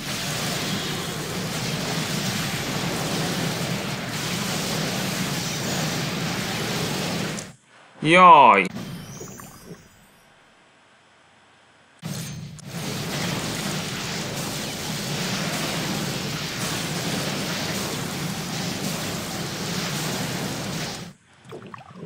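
Spells crackle and whoosh during a fantasy battle.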